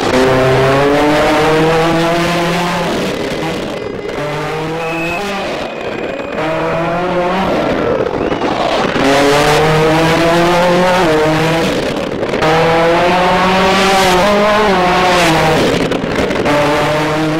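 A turbocharged four-cylinder rally car accelerates hard, shifting up through the gears.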